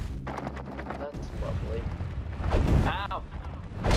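A beam of fire roars up.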